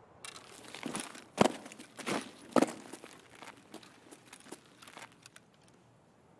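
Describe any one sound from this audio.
Footsteps scrape and thud on rock.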